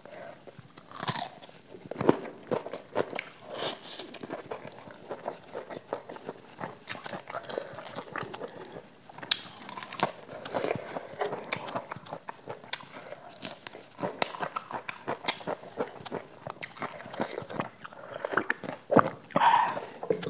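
Food crunches as a young woman bites into it.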